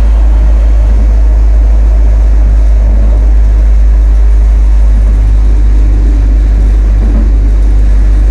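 A tram rumbles steadily along rails.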